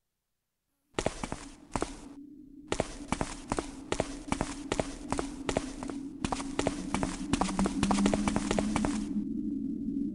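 Footsteps thud quickly on stone in an echoing tunnel.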